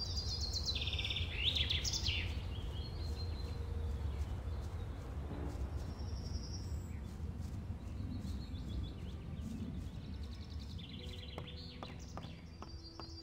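Footsteps thud softly on a dirt path.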